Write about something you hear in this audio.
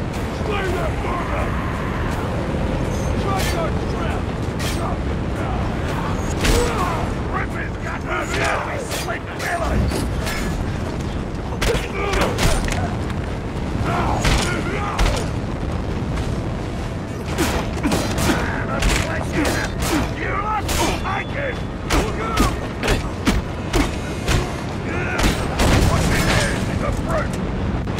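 Heavy punches and blows land again and again in a fight.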